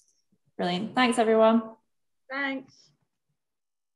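A young woman speaks briefly and calmly over an online call.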